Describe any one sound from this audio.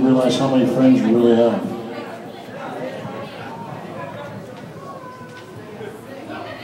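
An electric guitar plays loudly through an amplifier.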